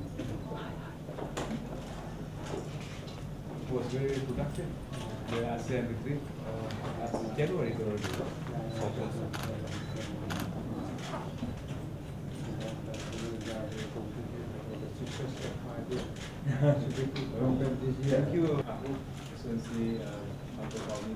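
A crowd of men murmur and talk in a room.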